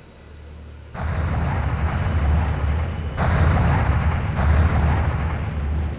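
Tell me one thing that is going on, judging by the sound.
A magical spell hums and roars with a steady rushing sound.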